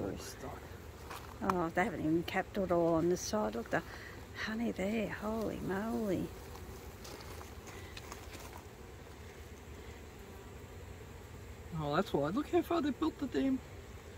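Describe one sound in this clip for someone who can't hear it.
Bees buzz softly.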